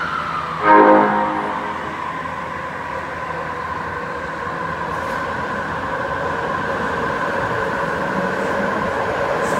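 Train wheels rumble along the rails in an echoing underground station.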